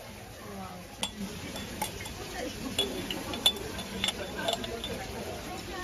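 Broth sizzles as it is poured into a hot stone bowl.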